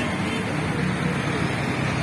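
A motor tricycle putters past.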